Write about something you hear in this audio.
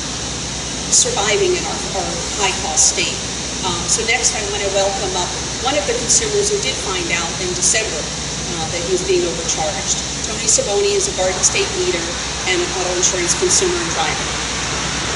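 A woman speaks steadily and earnestly into a microphone outdoors.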